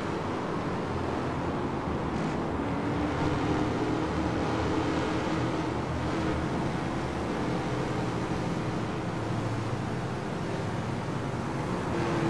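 Many racing car engines roar together at high revs.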